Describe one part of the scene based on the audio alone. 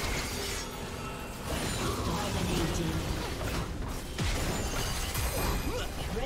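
Game spell effects zap and crackle in a busy fight.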